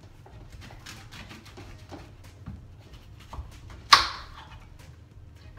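A knife cuts through fruit on a chopping board with soft taps.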